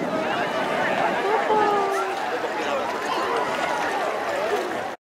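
A crowd of men, women and children chatter and call out outdoors.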